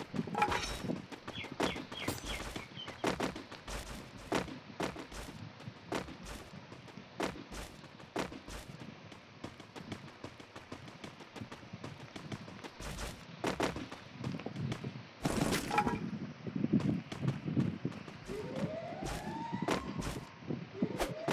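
Footsteps run across the ground.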